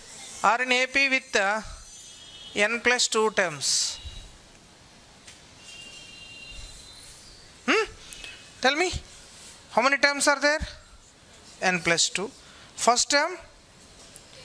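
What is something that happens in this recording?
A man speaks calmly into a close microphone, explaining in short phrases.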